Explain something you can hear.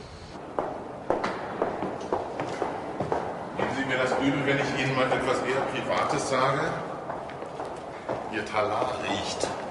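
Footsteps echo in a large hall.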